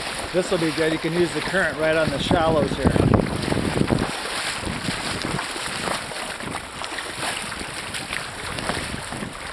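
A river rushes and gurgles close by.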